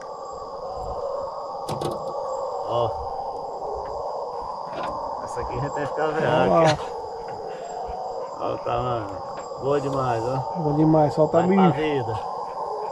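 Insects buzz steadily outdoors.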